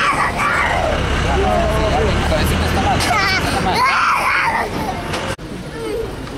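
A young child cries and wails loudly, close by.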